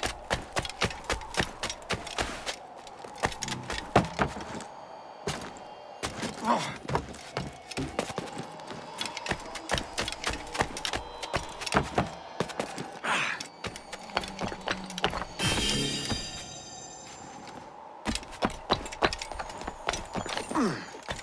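Quick footsteps patter and thud.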